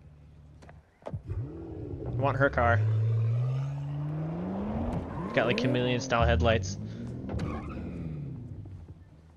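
A car engine revs loudly and rises in pitch as the car pulls away.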